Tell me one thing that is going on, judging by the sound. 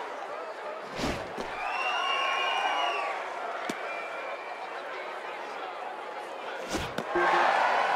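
A baseball smacks into a catcher's mitt with a sharp thump.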